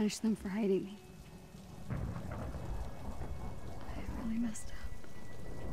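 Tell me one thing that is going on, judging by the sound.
A young woman speaks in an upset voice.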